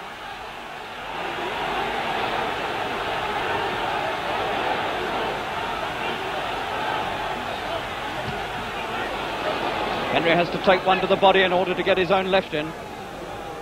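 A large crowd cheers and roars in a big hall.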